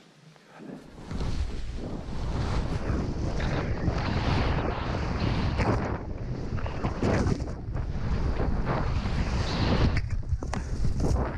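Skis hiss and swish through deep powder snow.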